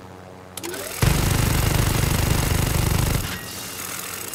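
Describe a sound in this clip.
A heavy machine gun fires a long, rapid burst up close.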